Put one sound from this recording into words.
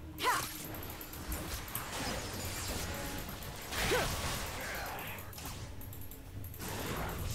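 Fast-paced video game sound effects whoosh, zap and crackle throughout.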